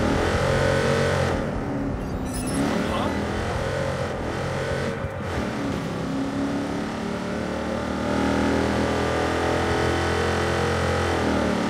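A car engine roars and revs as the car speeds along.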